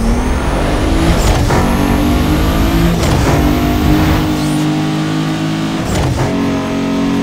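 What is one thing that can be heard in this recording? A racing car engine roars at high speed, its pitch climbing and dropping with each quick gear change.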